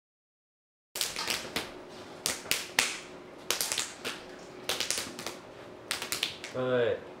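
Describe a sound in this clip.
Young men clap and slap their hands together in a hand game.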